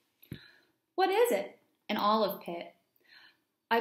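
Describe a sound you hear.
A young woman reads aloud calmly, close by.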